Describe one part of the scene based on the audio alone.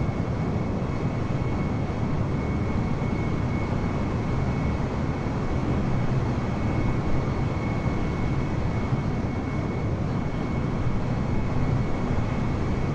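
A jet airliner's engines roar steadily as it flies by.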